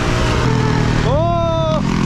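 Another dirt bike engine revs nearby, rising in pitch.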